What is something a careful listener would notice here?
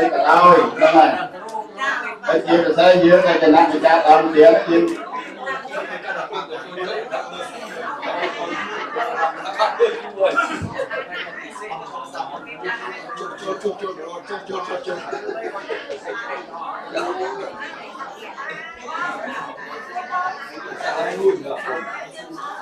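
A crowd of men and women chatter quietly indoors.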